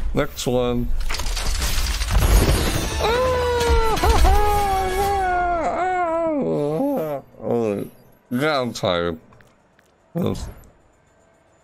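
A young man exclaims and sings out excitedly close to a microphone.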